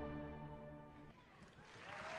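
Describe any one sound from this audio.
A group of singers holds a final chord that cuts off.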